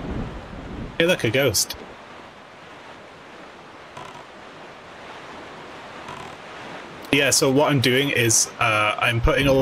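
A small sailboat splashes steadily through waves.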